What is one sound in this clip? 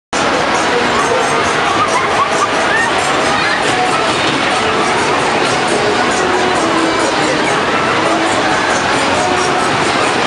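Water splashes and pours down a waterfall.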